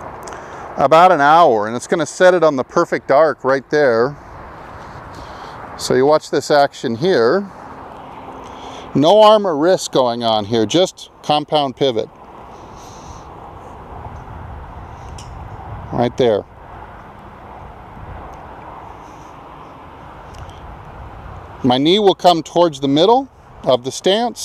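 A man speaks calmly and clearly into a close microphone, outdoors.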